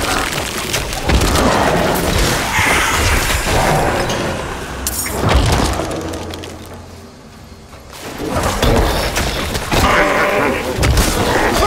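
Video game combat effects crash and clash rapidly, then briefly quiet down before rising again.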